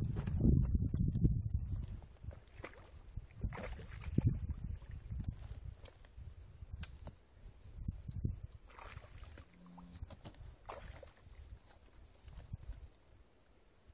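Boots tread on a muddy bank.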